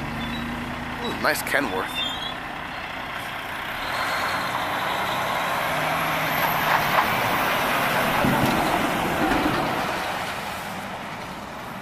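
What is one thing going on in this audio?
A heavy tanker truck roars closely past and fades away.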